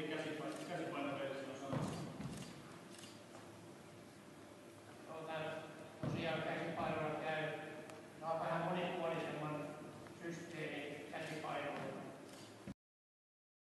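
Several women talk in a large echoing hall.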